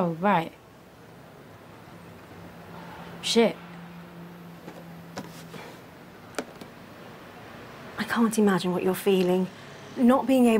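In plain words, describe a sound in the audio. A young woman speaks calmly nearby.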